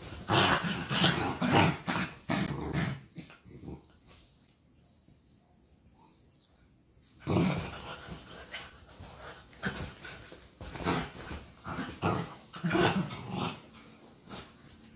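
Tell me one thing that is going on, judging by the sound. Two dogs growl playfully at close range.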